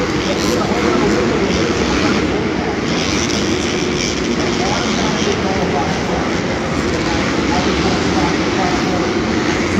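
Motorcycle engines rev and roar as bikes ride over dirt jumps.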